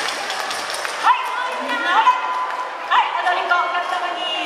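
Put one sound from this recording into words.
A group of women and men shout and whoop excitedly.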